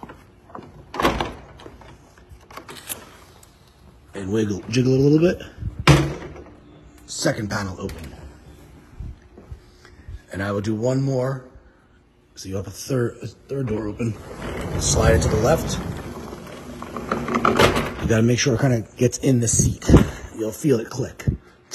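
A glass sliding door rattles and knocks in its frame.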